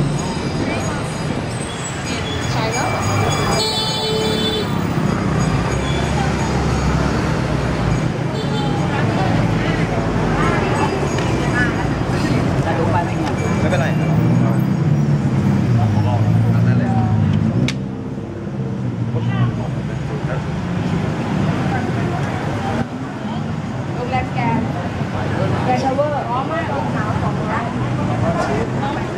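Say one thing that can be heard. Traffic rumbles past on a road.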